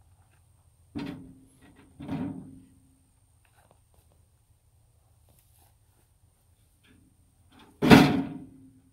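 Wooden logs thud into a metal wagon.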